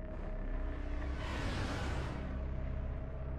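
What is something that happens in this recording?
A spaceship swoops in with a loud rushing whoosh.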